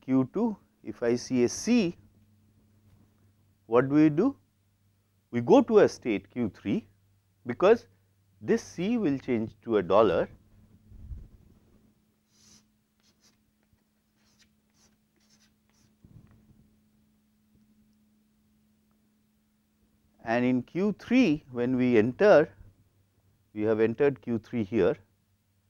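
A man lectures calmly, close to a clip-on microphone.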